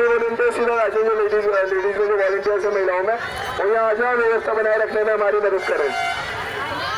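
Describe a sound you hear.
A crowd of women chants loudly in unison outdoors.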